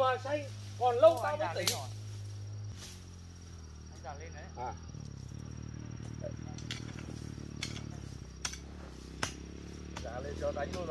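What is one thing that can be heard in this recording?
A hoe scrapes and chops into dry soil.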